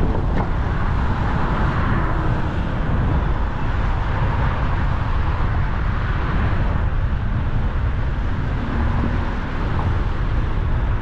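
Traffic hums along a nearby road.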